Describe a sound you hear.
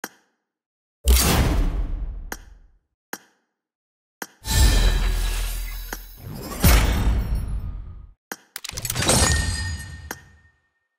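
Bright reward fanfares swell and then fade away.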